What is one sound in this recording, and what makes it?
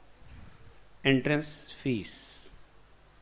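A man speaks briefly through a close microphone.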